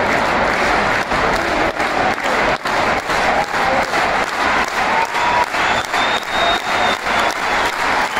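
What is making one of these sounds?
A large crowd claps in rhythm.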